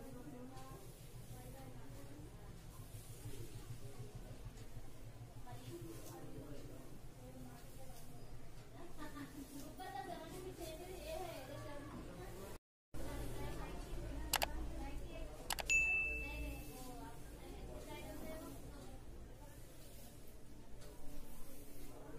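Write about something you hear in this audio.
A comb swishes through long hair.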